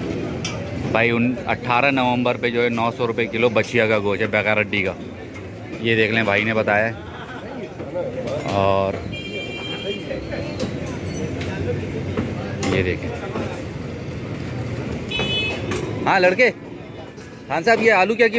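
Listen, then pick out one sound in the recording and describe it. Men talk loudly nearby.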